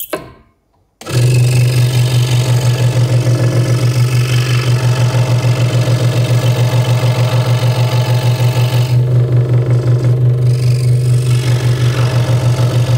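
A scroll saw buzzes steadily as it cuts through wood.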